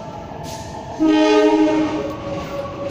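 A train horn blares once, loud and short.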